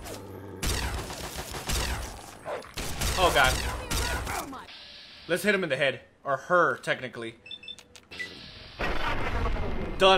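A laser gun fires shots with sharp zaps.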